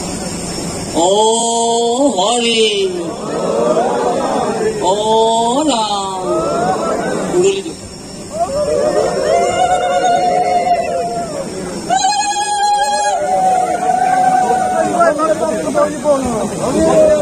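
A crowd of men chants slogans loudly in unison.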